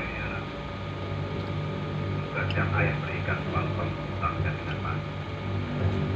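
A man speaks calmly, heard through loudspeakers.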